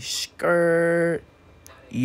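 A toy rolls across a hard floor.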